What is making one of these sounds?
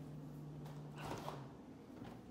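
A refrigerator door is pulled open with a soft seal release.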